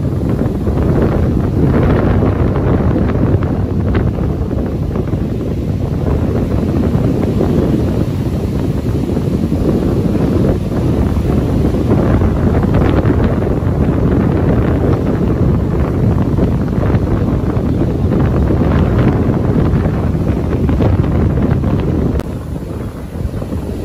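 Waves crash and roar onto a beach.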